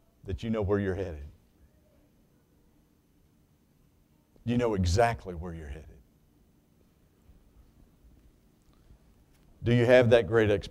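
A man speaks into a microphone in a calm, preaching manner, pausing between phrases.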